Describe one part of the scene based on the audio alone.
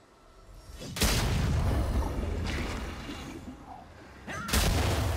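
Magic spell effects whoosh and burst loudly.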